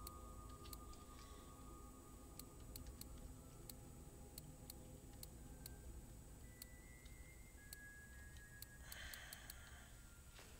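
Soft menu clicks tick as items are scrolled through.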